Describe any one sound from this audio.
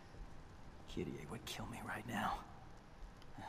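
A young man speaks quietly and wearily.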